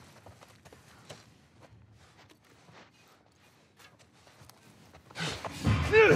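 Footsteps crunch softly over scattered debris.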